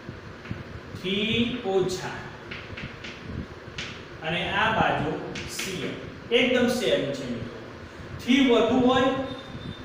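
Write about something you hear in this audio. A man speaks calmly nearby, explaining.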